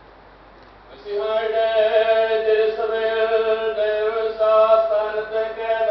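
Men sing a slow, held hymn together through a loudspeaker in a large space.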